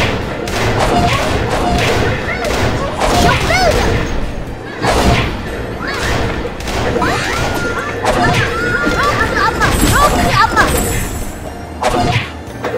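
Explosions and blasts from a video game battle boom repeatedly.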